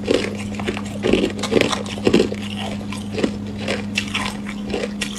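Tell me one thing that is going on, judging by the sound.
A young woman crunches ice loudly close to a microphone.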